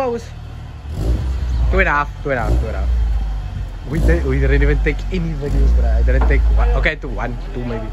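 A car engine revs loudly in short bursts.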